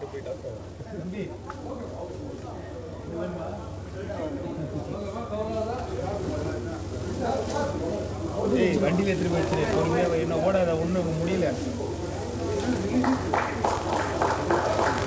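A crowd of men and women talks and calls out loudly.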